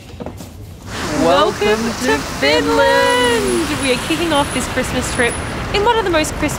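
A young woman talks cheerfully, close up.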